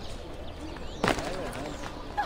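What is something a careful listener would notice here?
Feet land with a heavy thud on stone.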